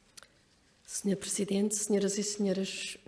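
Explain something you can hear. A middle-aged woman speaks calmly into a microphone in a large echoing hall.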